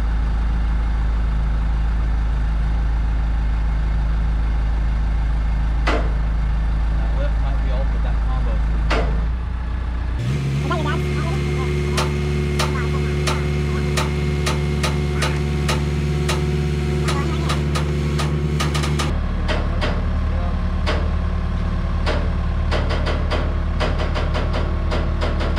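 A diesel engine rumbles steadily nearby, working harder for a while as a load is lifted.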